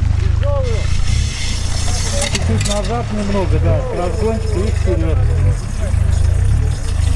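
Muddy water splashes around car wheels.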